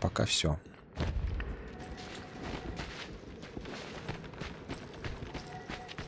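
Footsteps scuff softly on a wooden floor.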